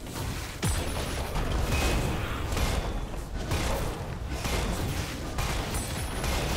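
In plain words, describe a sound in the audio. Magic spells crackle and blast in a busy fantasy battle.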